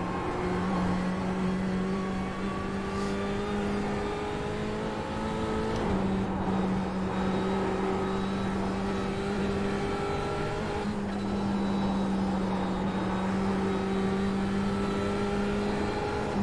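A race car engine hums steadily, rising and falling with gear changes.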